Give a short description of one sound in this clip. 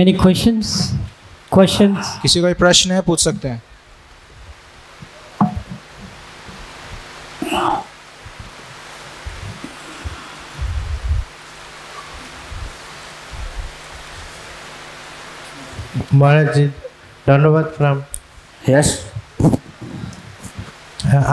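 An elderly man speaks calmly through a headset microphone, with pauses.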